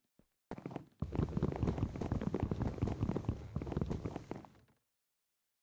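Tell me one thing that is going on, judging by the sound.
Footsteps tap on wooden stairs.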